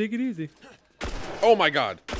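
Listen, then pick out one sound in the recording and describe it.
A pistol fires a loud shot at close range.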